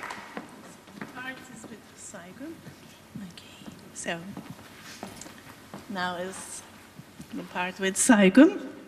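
A woman speaks to the audience through a microphone.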